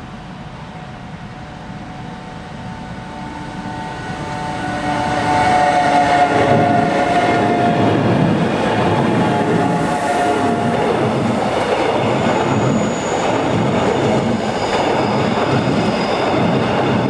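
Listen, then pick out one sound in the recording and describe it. A train's wheels squeal on the rails.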